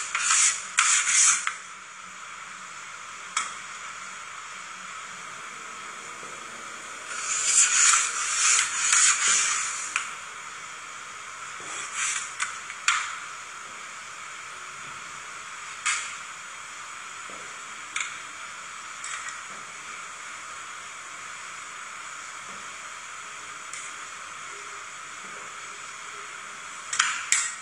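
Metal spatulas scrape across a frozen metal plate.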